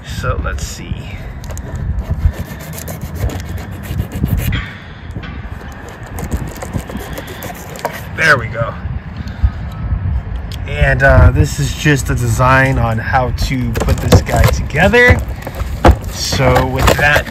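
A cardboard box rustles and taps as hands turn it over.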